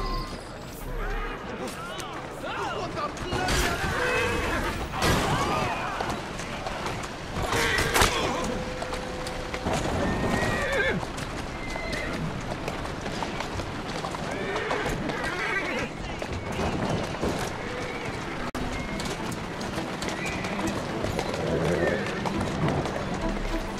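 Carriage wheels rumble and rattle over a stone road.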